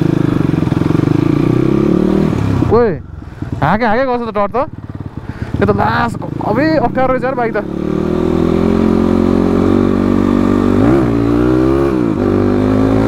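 A motorcycle engine runs close by, idling and revving up and down.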